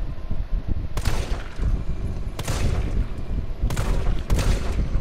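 A pistol fires several loud shots that echo briefly.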